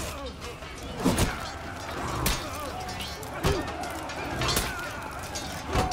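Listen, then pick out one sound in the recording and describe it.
Swords and blades clash in a melee with sharp metallic hits.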